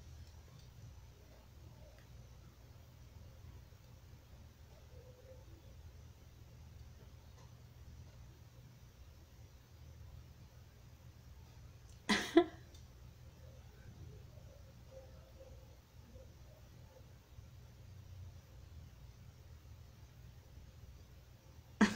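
A middle-aged woman speaks softly and calmly, close by.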